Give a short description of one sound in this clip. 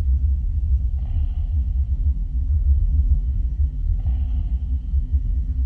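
A mechanical claw arm whirs briefly.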